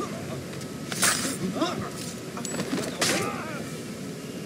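A blade swishes and strikes with sharp hits.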